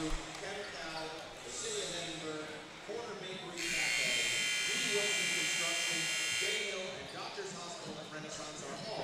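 A large crowd chatters in an echoing gym.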